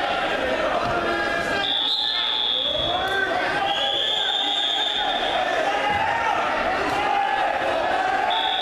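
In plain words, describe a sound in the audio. A man shouts instructions nearby.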